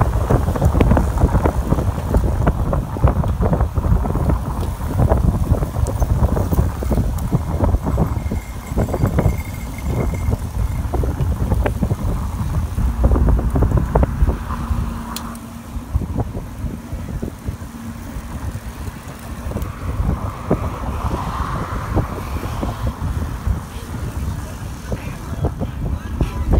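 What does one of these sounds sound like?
Bicycle tyres hiss on a wet road.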